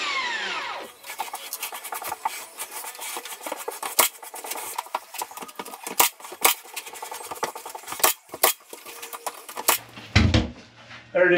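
Sharp knocks and taps of work on a wall sound close by.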